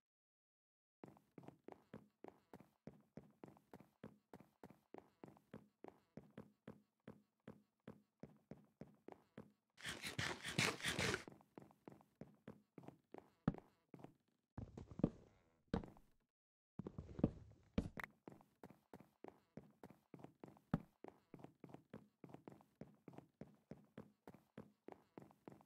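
Footsteps patter quickly and steadily on wooden planks.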